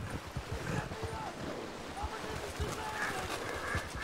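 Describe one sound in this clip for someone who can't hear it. A horse splashes through shallow water.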